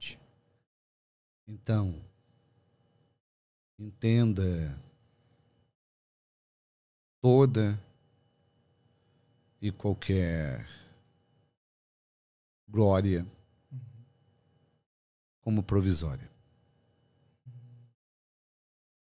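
A middle-aged man speaks slowly in short bursts into a close microphone.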